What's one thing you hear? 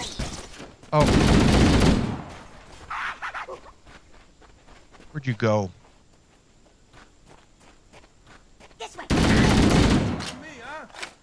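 An automatic rifle fires loud rapid bursts.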